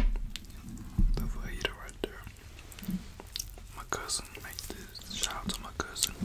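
Crispy fried meat crackles and tears between fingers close to a microphone.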